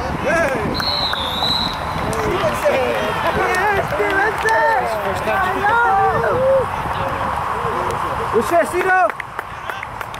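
Young men shout and cheer nearby outdoors.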